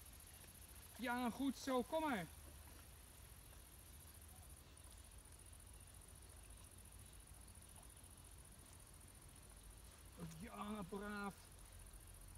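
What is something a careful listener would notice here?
A water bird calls loudly a few times nearby.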